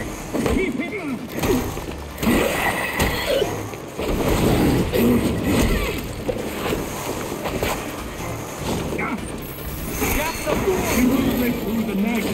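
Punches and blows land with heavy thuds in a fight.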